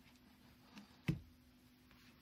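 A plastic glue gun knocks against a table.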